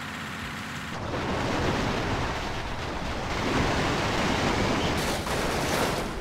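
A giant vehicle crushes a truck with loud crunching metal.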